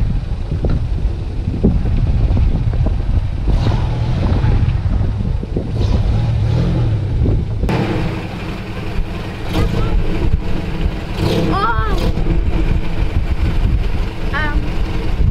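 Tyres crunch and grind over rock and gravel.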